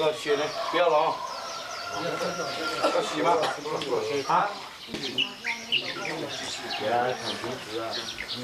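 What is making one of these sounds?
Several men talk nearby with animation.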